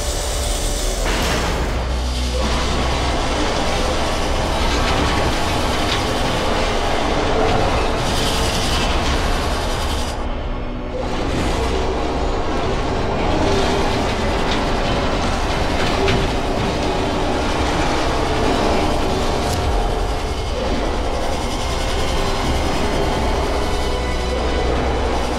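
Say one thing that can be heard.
A futuristic vehicle's engine hums and whines steadily as it hovers.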